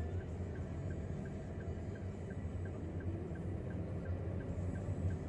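A car engine hums low and steady from inside the cabin.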